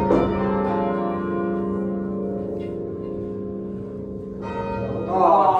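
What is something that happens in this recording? Church bells ring loudly overhead.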